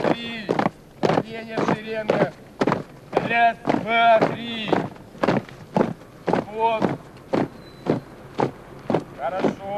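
Boots stamp in rhythm on pavement as a group marches.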